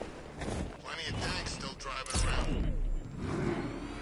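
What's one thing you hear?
A heavy landing thuds.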